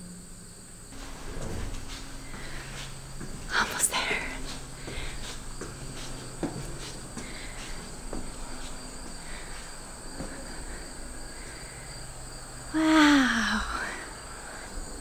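A young woman talks with animation close by.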